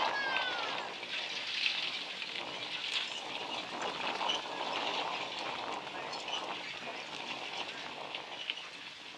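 Carriage wheels roll over dirt.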